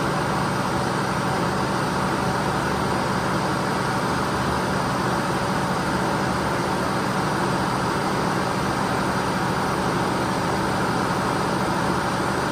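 A small tracked loader's engine runs with a steady drone nearby.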